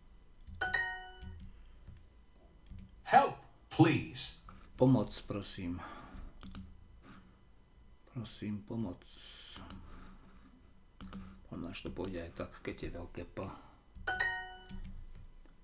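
A short bright chime rings twice.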